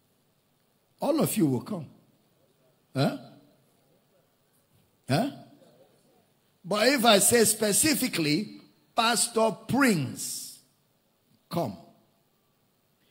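A man preaches with animation into a microphone, in short bursts with pauses, in a large echoing hall.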